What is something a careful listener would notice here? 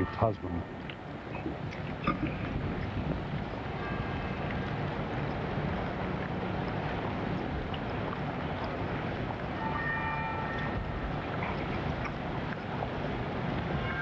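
A large crowd murmurs softly outdoors.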